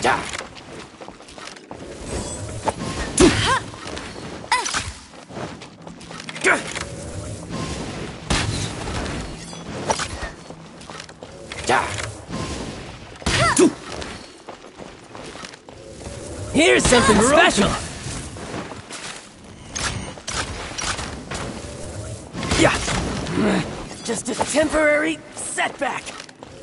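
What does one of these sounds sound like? A bow twangs as arrows are loosed again and again.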